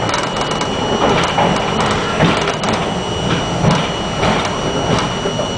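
Steel wheels clack over rail joints.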